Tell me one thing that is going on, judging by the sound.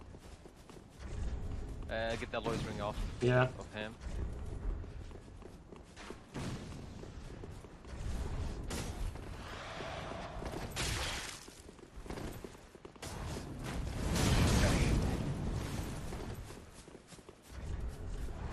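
Sword swings and blows ring out in a video game fight.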